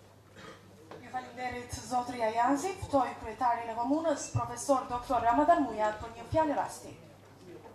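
A young woman speaks clearly through a microphone.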